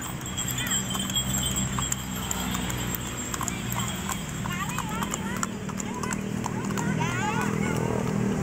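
A horse's hooves clop on pavement.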